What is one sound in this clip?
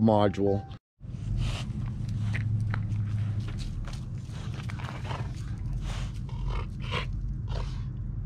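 A dog's feet rustle on grass and leaves.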